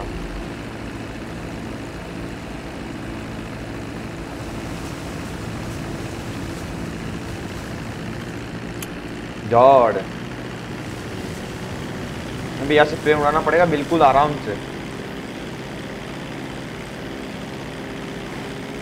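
A small propeller plane engine drones steadily.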